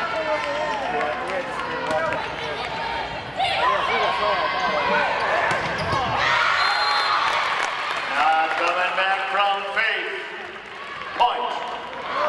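A volleyball is hit with sharp slaps.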